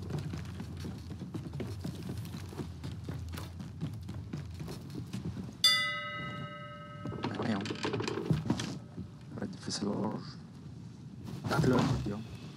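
Waves wash steadily against a wooden ship.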